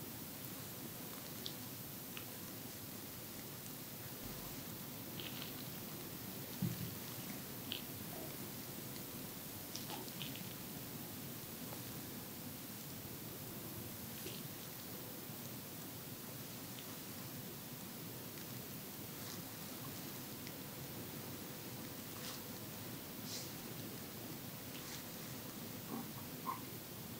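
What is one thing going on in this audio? Feathers brush softly and lightly across skin, with faint scratchy rustles.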